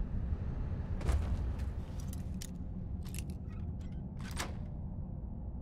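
A lockpick scrapes and clicks inside a lock.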